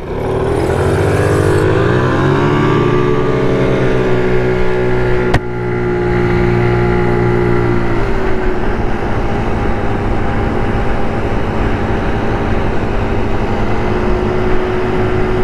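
A scooter engine revs up and hums steadily close by.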